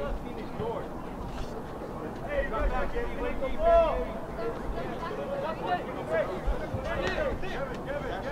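Adults talk casually nearby.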